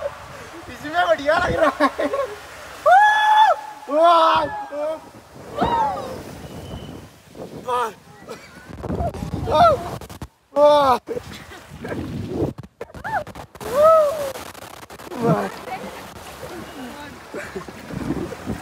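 A young man shouts and laughs close by.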